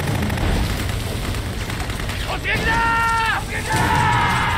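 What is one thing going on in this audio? A man shouts a command loudly.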